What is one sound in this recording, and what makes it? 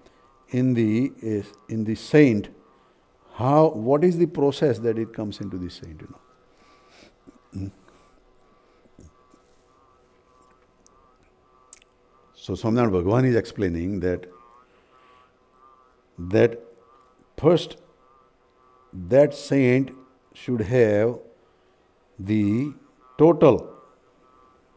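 An older man speaks calmly and slowly into a nearby microphone, with long pauses.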